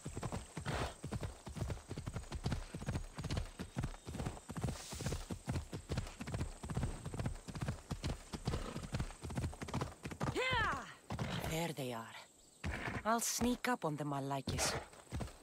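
A horse gallops with quick, steady hoofbeats on a dirt path.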